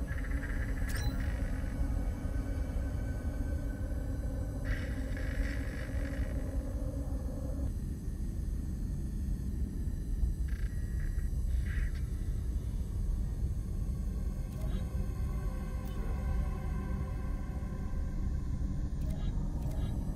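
Soft electronic menu clicks sound now and then.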